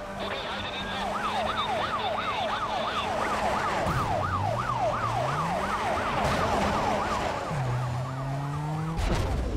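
Police sirens wail close behind.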